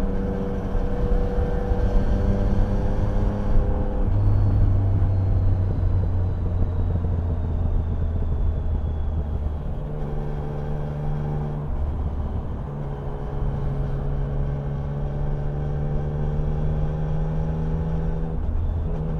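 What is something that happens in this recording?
Cars and a truck roar past close by.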